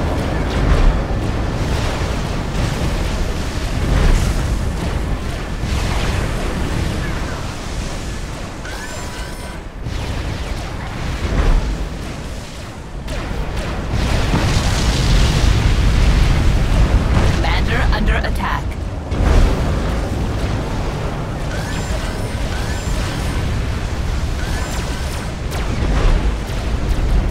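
Distant explosions boom and rumble in a battle.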